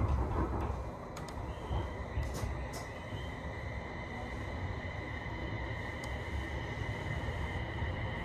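A train pulls away and its wheels start rolling on the track.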